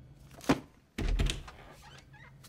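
A hollow book snaps shut with a thud.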